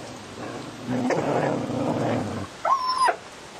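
A dog growls low and fiercely.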